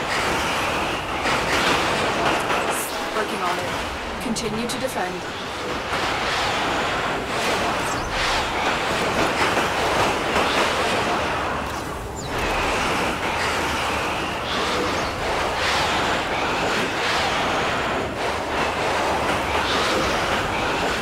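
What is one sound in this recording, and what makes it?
A swirling storm of wind roars steadily.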